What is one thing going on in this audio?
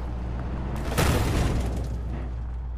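A truck bumps hard against rock with a loud thud.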